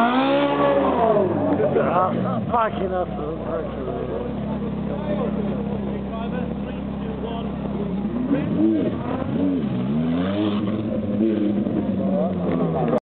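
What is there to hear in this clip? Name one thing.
A crowd murmurs and chatters in the street.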